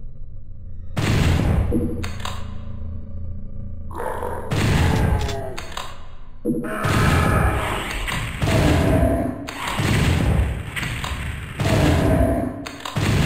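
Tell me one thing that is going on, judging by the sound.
Shotgun blasts boom loudly and echo.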